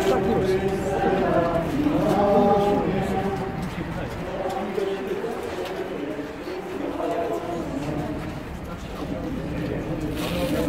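A crowd of older men and women talks and murmurs nearby, outdoors.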